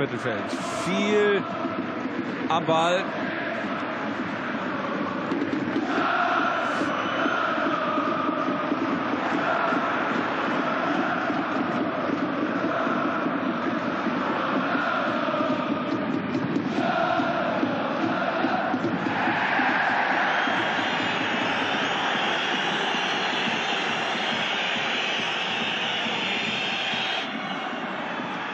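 A large stadium crowd chants and roars steadily.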